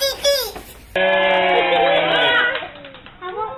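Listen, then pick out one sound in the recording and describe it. A crowd shouts and cheers.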